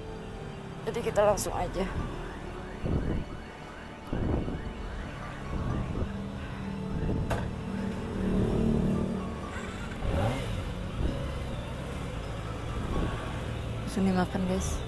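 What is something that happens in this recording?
A motorcycle engine idles close by with a low rumble.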